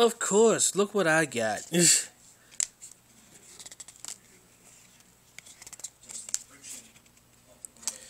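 Cards rustle and flick as they are handled.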